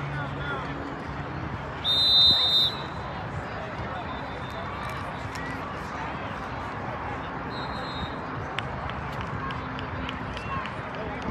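Children shout and chatter far off across an open field outdoors.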